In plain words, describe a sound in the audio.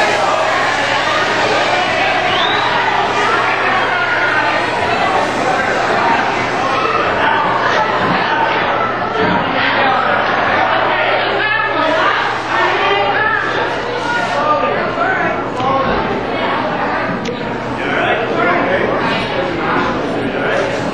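A crowd of men and women chat with one another in a large echoing room.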